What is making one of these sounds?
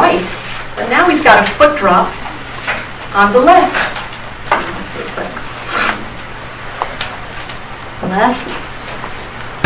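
A woman speaks calmly and clearly, with a slight echo in a large room.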